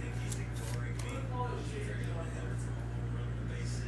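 A plastic sleeve rustles as it is handled.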